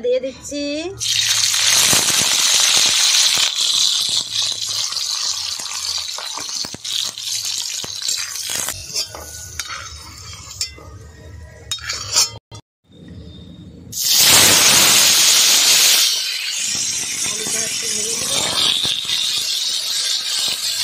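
Food sizzles and crackles loudly in hot oil.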